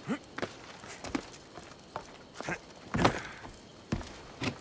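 Footsteps thud on wooden roof tiles.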